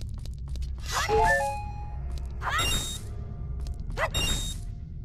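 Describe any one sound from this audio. A sword swishes sharply through the air.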